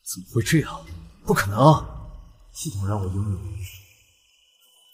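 A young man speaks with surprise, close by.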